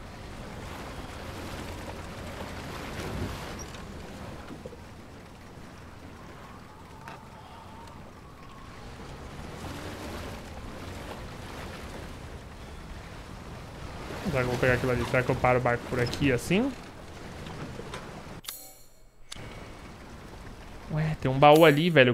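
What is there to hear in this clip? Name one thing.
Water laps softly against a small wooden boat.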